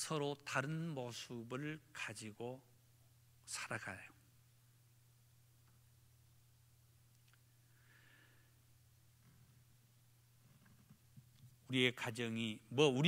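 A middle-aged man preaches with animation through a microphone, with long pauses.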